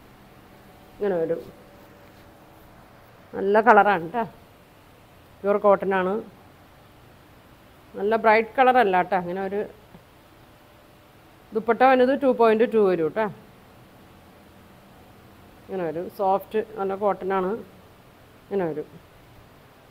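A woman speaks calmly close by, in short phrases with pauses.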